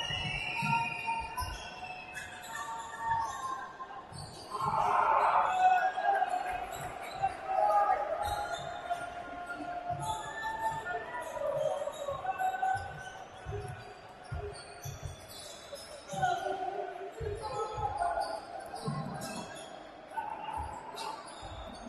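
A basketball bounces repeatedly on a wooden floor.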